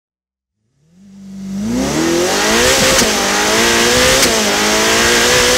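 A car engine roars and rises in pitch as the car speeds up.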